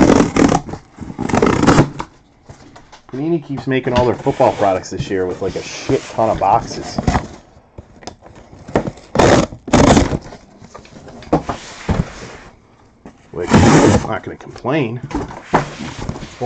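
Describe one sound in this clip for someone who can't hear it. Cardboard rubs and scrapes as a box is handled close by.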